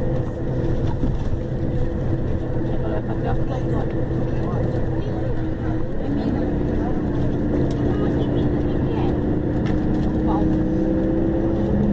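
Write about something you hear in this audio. A vehicle engine hums steadily from inside, changing pitch partway through.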